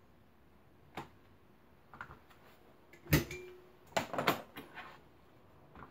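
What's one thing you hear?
Glass items clink and rattle.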